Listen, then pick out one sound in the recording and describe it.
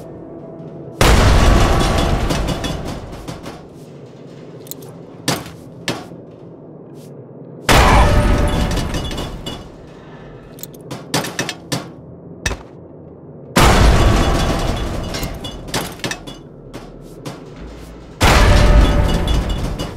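Grenades explode with loud booms that roll away slowly.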